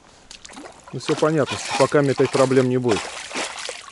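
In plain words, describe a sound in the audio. A fish splashes in the water.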